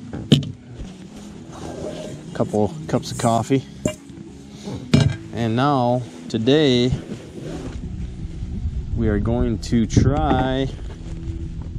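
A fabric bag rustles as hands rummage through it.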